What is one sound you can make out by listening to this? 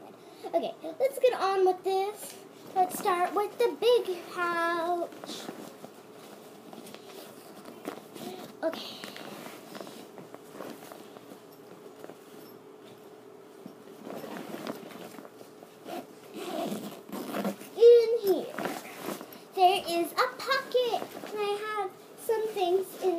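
Fabric rustles as a backpack is handled.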